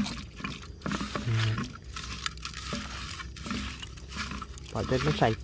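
Snail shells scrape and rattle against a metal pan.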